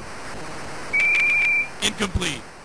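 A referee's whistle blows shortly.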